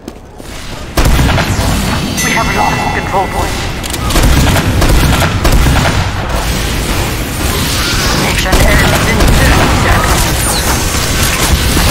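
A heavy machine gun fires in long, rapid, loud bursts.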